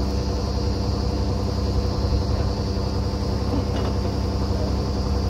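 A drilling rig's engine runs with a loud, steady drone outdoors.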